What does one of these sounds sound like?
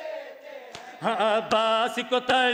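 A man sings a lament loudly through a microphone.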